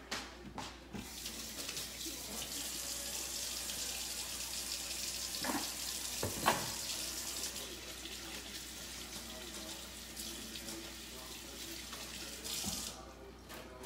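Water runs steadily from a tap and splashes into a sink.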